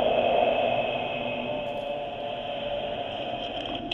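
Small waves lap against a rocky shore.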